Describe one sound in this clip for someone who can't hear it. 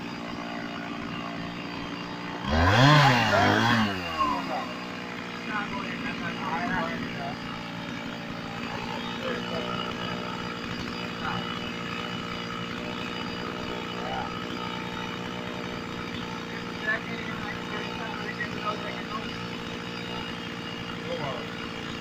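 A chainsaw idles.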